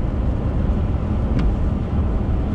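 A windscreen wiper swishes once across the glass.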